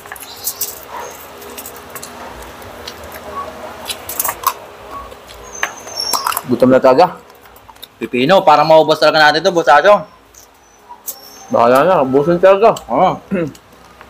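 Foil crinkles as hands pick at food.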